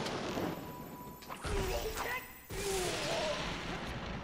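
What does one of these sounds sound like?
A bow twangs as an arrow is shot.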